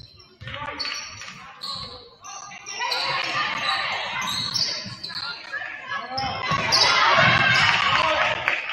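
A crowd murmurs and cheers in an echoing gym.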